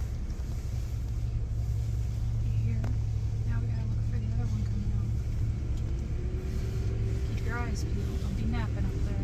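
A vehicle engine idles with a steady low hum.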